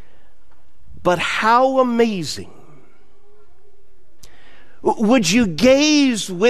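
A man speaks with animation into a microphone in a large echoing room.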